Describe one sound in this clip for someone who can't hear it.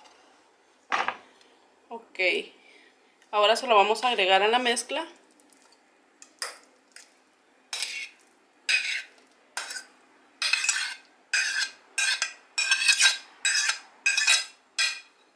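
A spoon scrapes and taps against a plate and a metal bowl.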